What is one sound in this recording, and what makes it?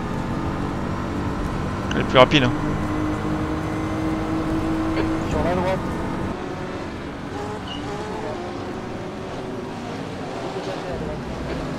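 A GT3 race car's engine roars at speed.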